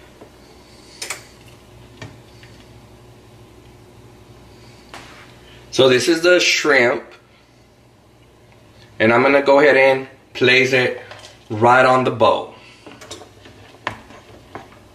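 A metal spoon clinks and taps against a pot.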